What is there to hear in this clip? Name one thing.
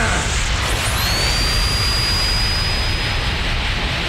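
A ball whooshes through the air.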